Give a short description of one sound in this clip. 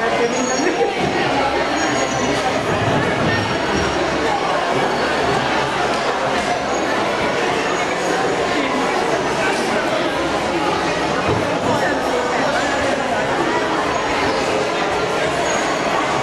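A crowd of women and men chatter all around in an echoing hall.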